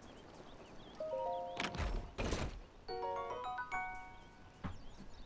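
A short bright chime melody plays.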